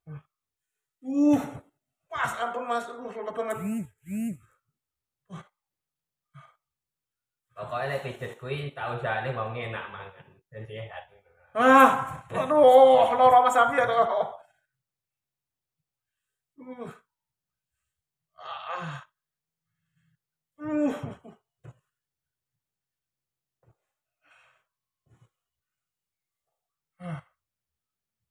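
A middle-aged man speaks calmly nearby, in short bursts.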